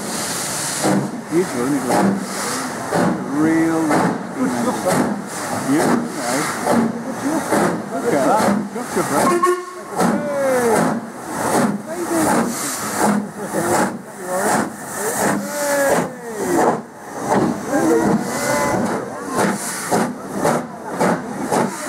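A steam locomotive chuffs heavily and rhythmically as it passes close by.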